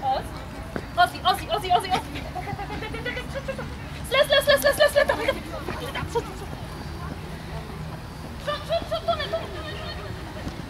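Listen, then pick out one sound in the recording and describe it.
A woman calls out short, excited commands to a dog outdoors.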